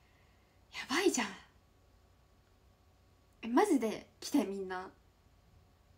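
A young woman giggles close to a microphone.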